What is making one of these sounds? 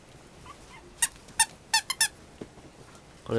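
A toy squeaks several times.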